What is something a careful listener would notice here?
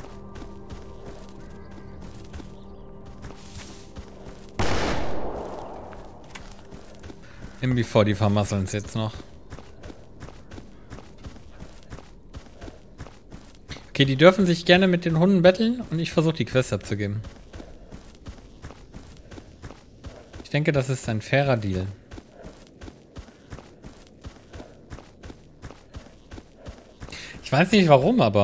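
Footsteps thud steadily on grass.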